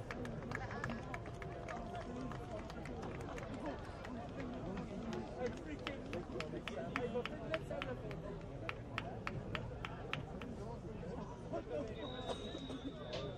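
A crowd of spectators chatters and cheers outdoors at a distance.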